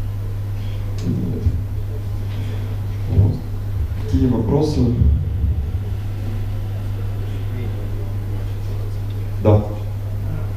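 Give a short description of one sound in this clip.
A man speaks calmly through a microphone in a large echoing hall, with short pauses.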